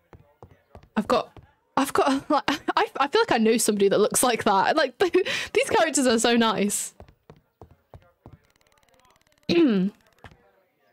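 A young woman talks and laughs with animation, close to a microphone.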